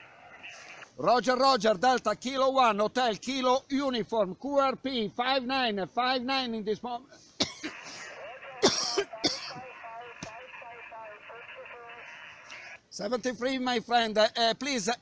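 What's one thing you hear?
A man speaks loudly and with animation into a handheld radio microphone, close by.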